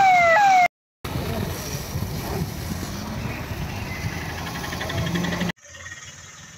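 Water hisses as it sprays hard from a fire hose.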